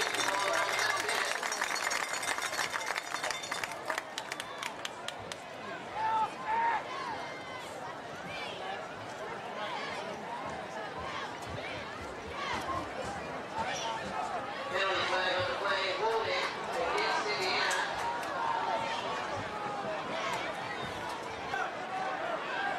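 Players shout to each other on the field.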